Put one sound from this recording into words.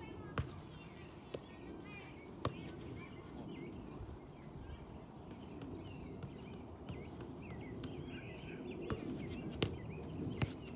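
A soccer ball is kicked with dull thumps.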